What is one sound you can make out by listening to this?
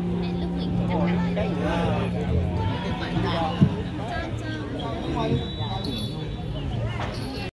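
Women sing together through loudspeakers outdoors.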